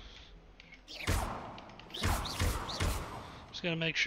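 A magic spell bursts with whooshing blasts.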